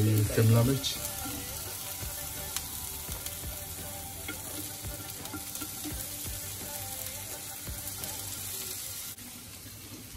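Peppers sizzle gently in a hot pan.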